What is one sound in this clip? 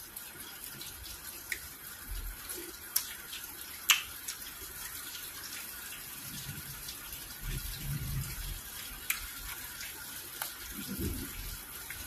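A woman chews and smacks food wetly, close up.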